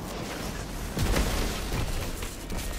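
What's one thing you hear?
An electric blast crackles and booms.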